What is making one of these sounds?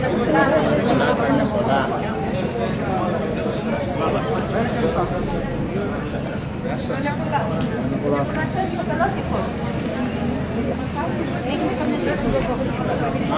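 Several adults talk and chatter nearby outdoors.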